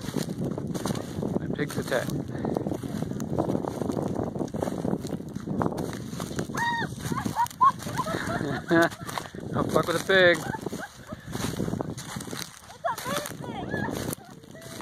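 Footsteps crunch through dry crop stubble.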